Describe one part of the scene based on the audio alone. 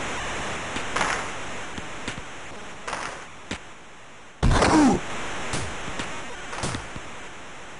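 A hockey puck clacks off sticks and boards.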